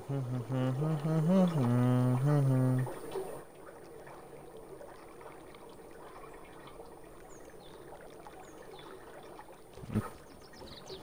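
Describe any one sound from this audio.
A goose paddles softly through water.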